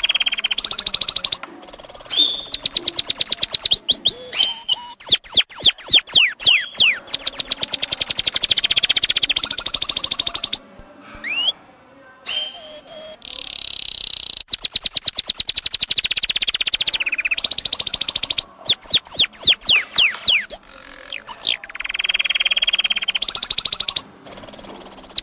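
A canary sings loud, rapid trills and warbles close by.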